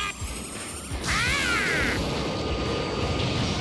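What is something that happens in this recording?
An energy blast bursts with a loud roaring whoosh.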